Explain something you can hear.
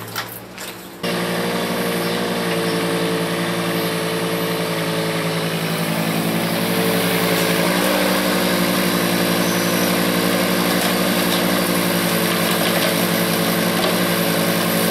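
A small digger's engine runs with a steady drone.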